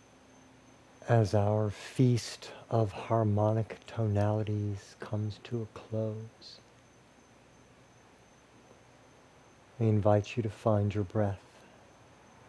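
A man speaks calmly and softly into a headset microphone, close by.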